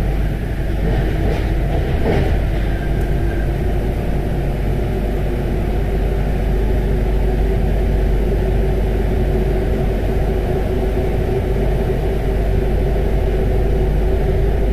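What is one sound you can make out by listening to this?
A subway train rumbles steadily through a tunnel.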